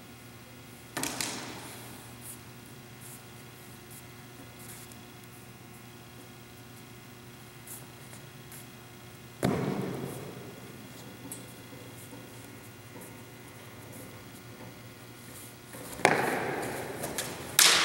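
Steel swords clash sharply and ring in a large echoing hall.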